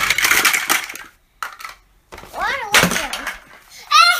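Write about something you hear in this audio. Plastic toy blocks clatter as they spill onto the floor.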